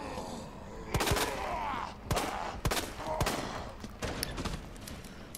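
Pistol shots ring out in an echoing hallway.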